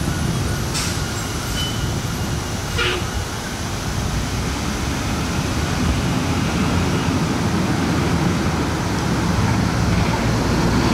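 A bus engine rumbles as the bus drives slowly closer and passes by.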